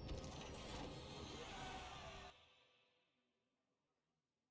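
A bright, triumphant game fanfare plays loudly and then cuts off, leaving a fading echo.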